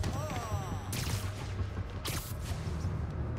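A sharp whoosh sweeps past as a figure leaps into the air.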